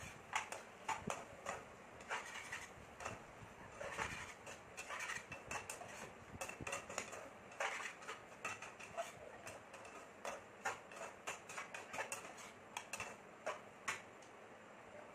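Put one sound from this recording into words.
A metal spoon scrapes and clinks against a frying pan.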